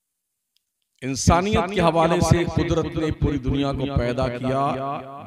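A man speaks over a microphone, loud and echoing, with a sing-song delivery.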